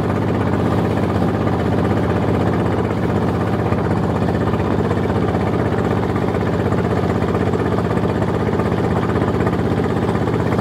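A boat engine chugs steadily and loudly nearby.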